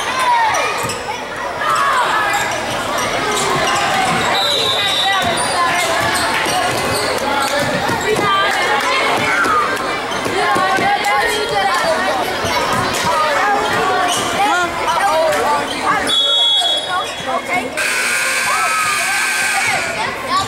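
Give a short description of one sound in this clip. A crowd of spectators talks and cheers in a large echoing gym.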